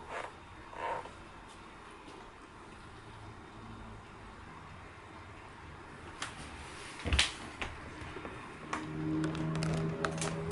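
Paper bedding rustles as a hamster moves.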